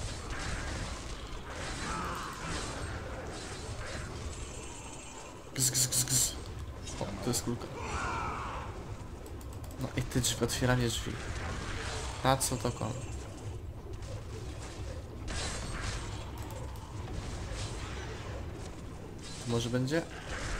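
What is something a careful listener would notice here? Game combat sounds clash and burst as spells hit enemies.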